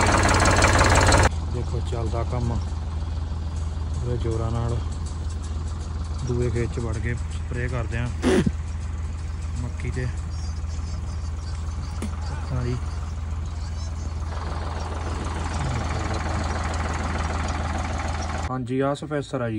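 A tractor engine idles with a steady low hum.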